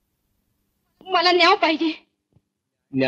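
A woman speaks briefly and anxiously.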